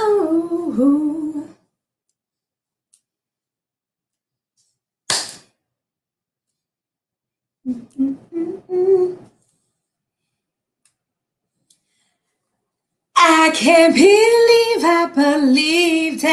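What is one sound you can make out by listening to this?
A woman sings and speaks with animation, heard through an online call.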